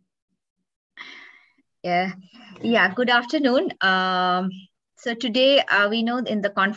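A second woman speaks calmly over an online call.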